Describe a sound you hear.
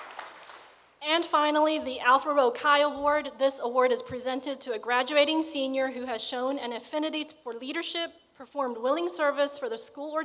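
A woman speaks calmly into a microphone over loudspeakers.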